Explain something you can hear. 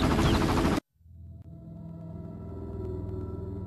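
Soft music plays quietly.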